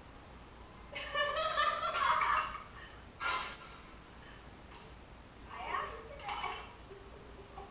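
A young girl and a woman talk and laugh playfully nearby.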